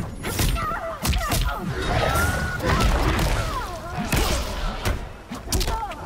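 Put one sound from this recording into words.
Magic blasts whoosh and burst.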